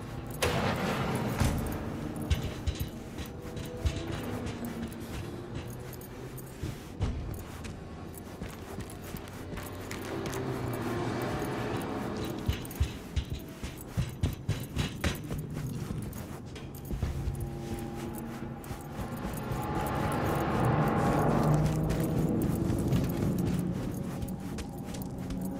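Footsteps clank on metal grating and floors.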